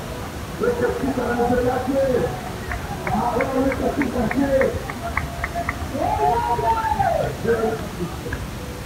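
A woman sings through a microphone and loudspeakers.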